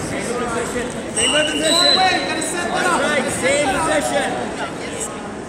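Spectators shout encouragement.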